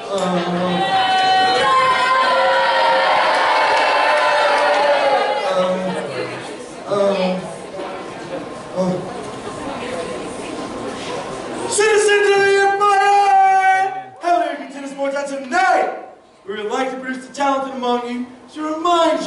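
A man declaims loudly through a loudspeaker in an echoing hall.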